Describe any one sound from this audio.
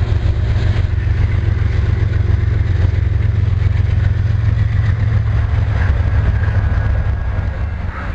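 Freight cars rumble and clatter past on the rails.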